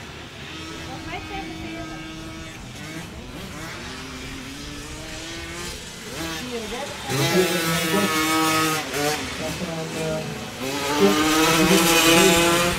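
Motorbike engines rev and whine as the bikes race past, growing louder as they come near.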